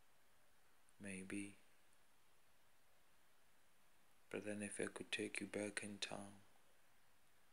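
A man speaks close by, in a low, calm voice.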